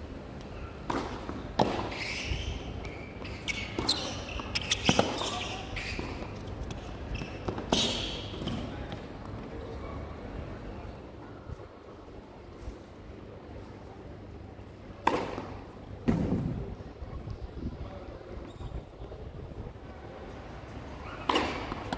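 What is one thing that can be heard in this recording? A tennis ball is struck back and forth by rackets with sharp pops.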